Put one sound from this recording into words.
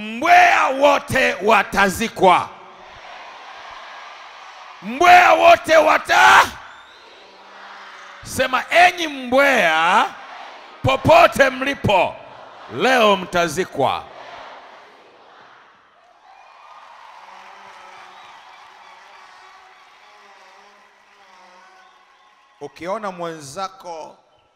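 A man preaches forcefully through a microphone and loudspeakers in a large echoing hall.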